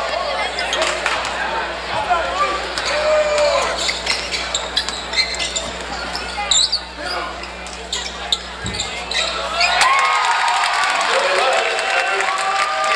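A crowd murmurs and chatters throughout a large echoing gym.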